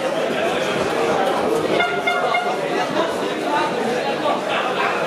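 A crowd of spectators cheers and shouts loudly in an echoing hall.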